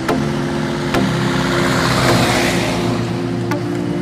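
A truck rumbles past close by.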